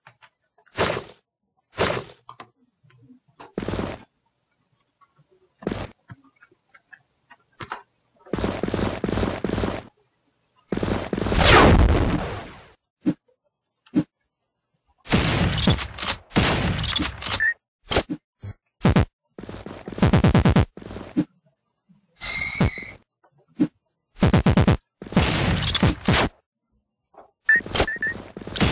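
Video game gunshots fire in quick bursts.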